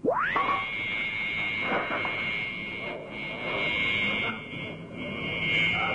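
A clarinet slides up and holds a long, steady high note.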